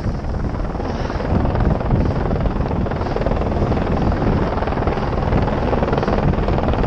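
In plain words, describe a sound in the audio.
Skis hiss and scrape steadily over snow.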